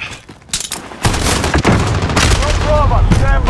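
Rifle shots crack out in rapid bursts.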